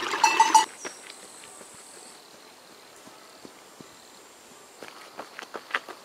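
Footsteps patter on a dirt path.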